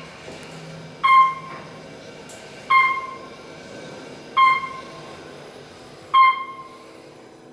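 An elevator chime dings briefly several times.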